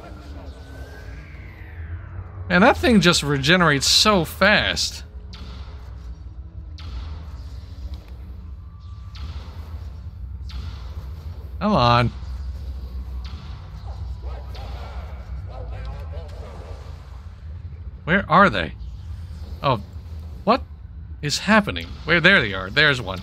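Magic spells burst with loud crackling blasts.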